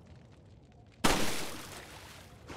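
A gunshot cracks sharply, followed by a short echo.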